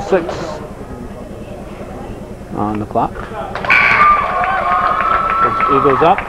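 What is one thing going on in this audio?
Spectators call out and cheer in a large echoing hall.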